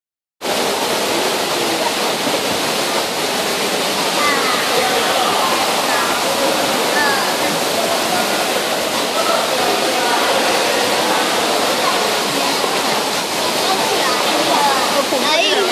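Water splashes as a child and a woman move in a pool.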